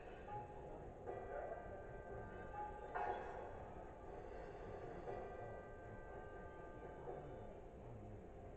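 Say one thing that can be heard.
Chiming notes ring out from a television speaker.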